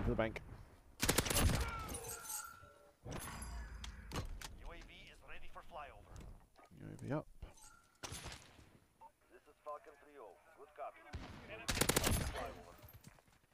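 Rapid gunshots fire in short, loud bursts.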